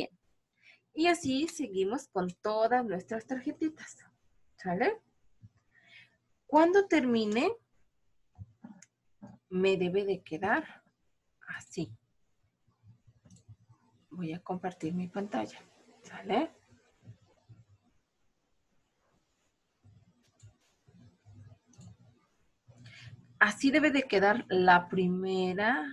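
A woman speaks calmly and clearly into a nearby microphone, with pauses.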